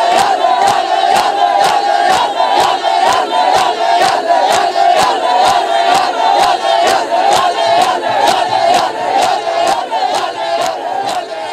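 A crowd of men chants loudly together in a reverberant hall.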